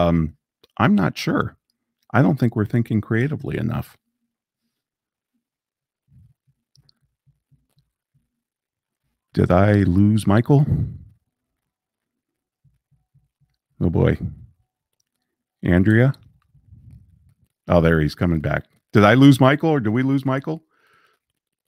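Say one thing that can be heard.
A middle-aged man speaks calmly and close into a microphone.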